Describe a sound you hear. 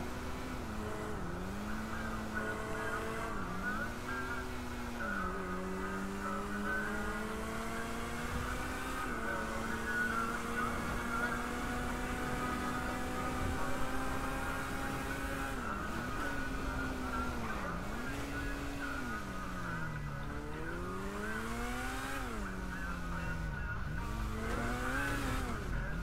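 A vehicle engine hums and revs up and down as it speeds along a road.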